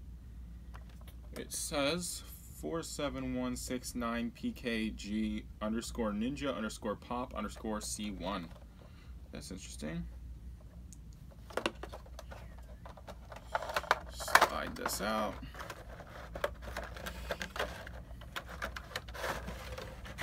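Cardboard packaging rustles and scrapes as a box is opened.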